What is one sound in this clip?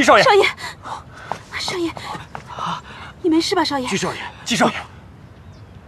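A young man calls out anxiously, close by.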